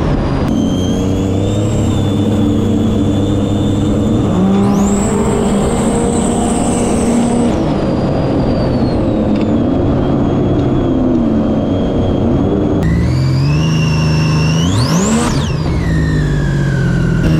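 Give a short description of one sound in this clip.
Water sprays and splashes against a hull.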